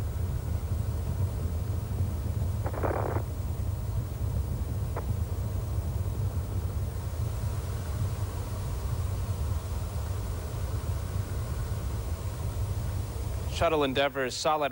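A rocket engine roars far off with a low, steady rumble.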